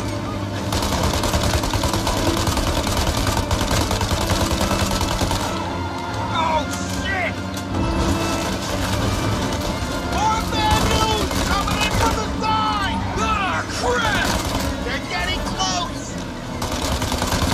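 A submachine gun fires rapid bursts of gunshots close by.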